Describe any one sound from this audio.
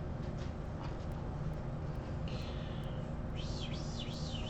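Cards shuffle and flick against each other.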